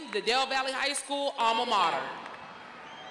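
A man speaks through loudspeakers in a large echoing hall.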